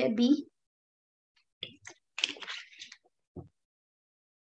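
A young woman speaks calmly through an online call.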